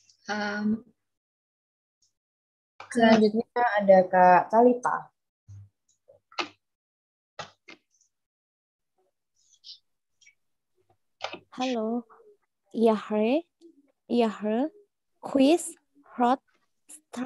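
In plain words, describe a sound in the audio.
A young woman speaks slowly and clearly through an online call, pausing between words.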